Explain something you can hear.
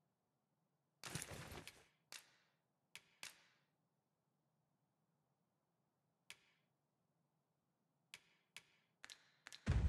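Short menu clicks and chimes sound now and then.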